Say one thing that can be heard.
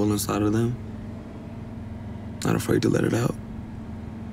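A young man speaks casually and up close in short bursts.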